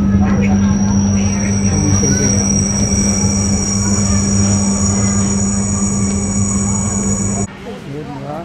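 A train rumbles and hums steadily from inside a carriage.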